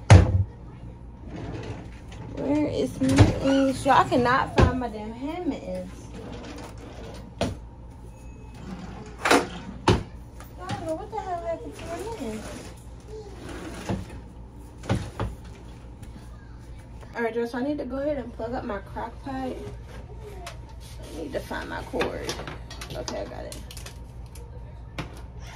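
Kitchen items clatter and knock on a counter.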